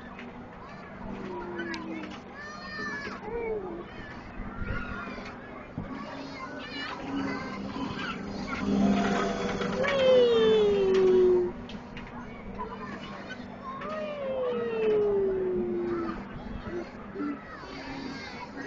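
A fairground ride hums and rattles steadily.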